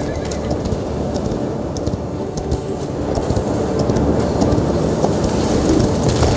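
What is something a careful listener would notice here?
Footsteps patter quickly on a stone floor.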